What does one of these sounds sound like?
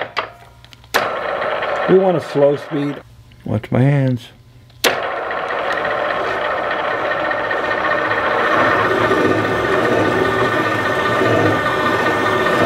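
A cutting tool grinds steadily against metal.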